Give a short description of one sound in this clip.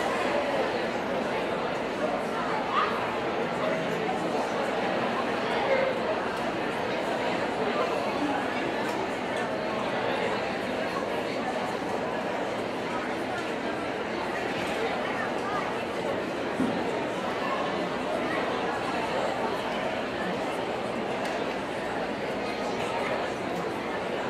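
A concert band plays steadily in a large echoing hall.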